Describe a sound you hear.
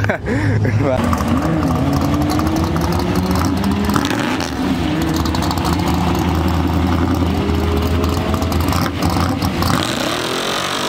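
A truck engine revs loudly and roars.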